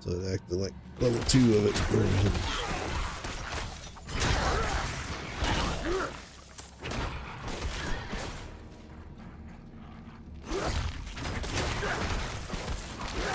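Heavy blows and blasts crash repeatedly in a fight.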